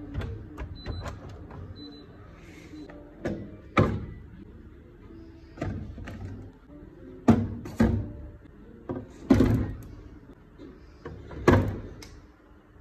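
Plastic bottles and cartons knock and clatter as a hand arranges them on a shelf.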